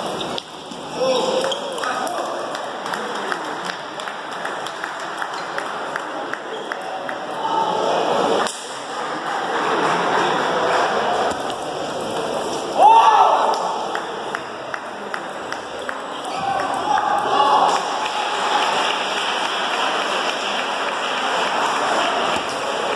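Paddles knock a ping-pong ball back and forth.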